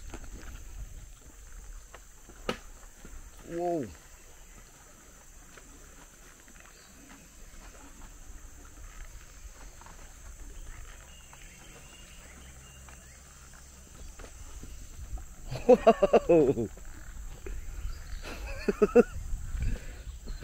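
Footsteps tread on a dirt path.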